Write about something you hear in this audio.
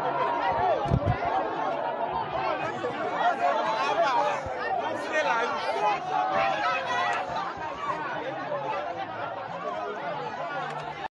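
A large crowd of men and women shouts and chants excitedly close by, outdoors.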